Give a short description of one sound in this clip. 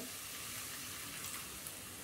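Liquid pours into a hot pan.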